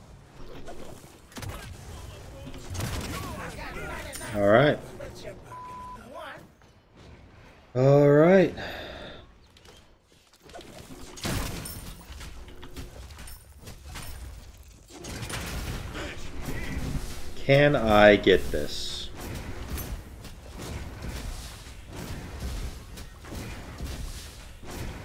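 Game fighting sounds clash and whoosh.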